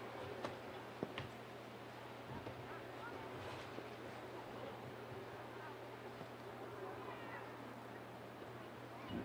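Young women shout to each other in the distance across an open field.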